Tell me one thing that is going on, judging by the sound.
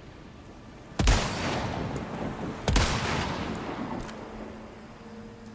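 A rifle fires twice, each shot a loud boom that echoes away.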